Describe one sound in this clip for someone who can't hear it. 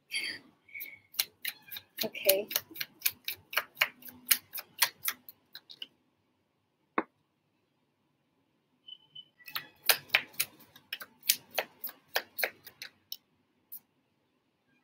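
Cards are shuffled with quick riffling clicks.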